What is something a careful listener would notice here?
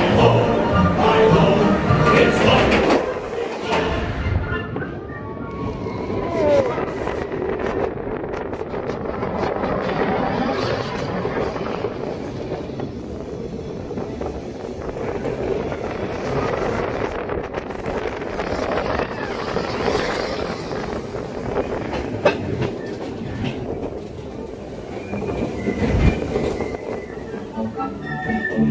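A roller coaster car rattles and rumbles along its track.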